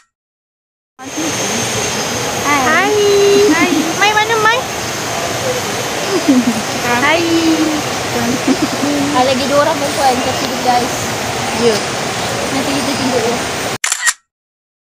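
Young women talk and laugh with animation close by.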